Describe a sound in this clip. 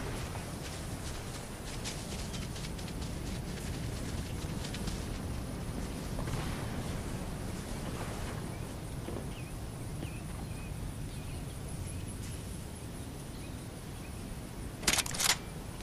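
Footsteps pad softly through grass.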